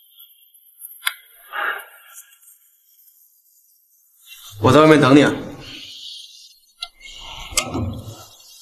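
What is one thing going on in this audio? A door opens and closes.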